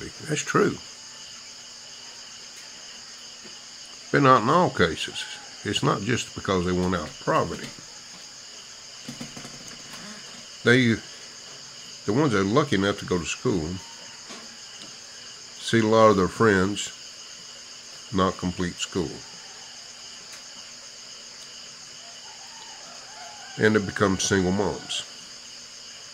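A middle-aged man talks calmly and close up, with pauses.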